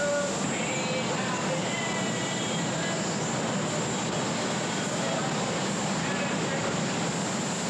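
Spray guns hiss steadily.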